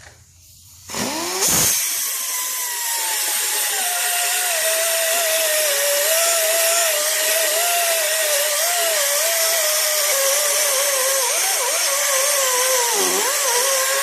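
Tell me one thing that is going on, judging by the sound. An electric drill whines at high speed, its pitch wavering slightly.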